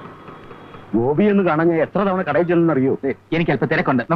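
A middle-aged man speaks with animation, close by.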